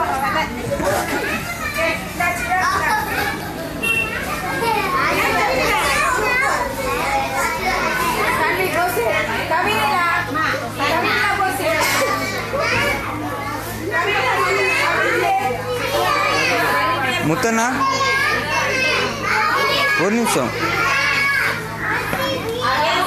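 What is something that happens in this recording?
Young children squeal and shriek with high voices.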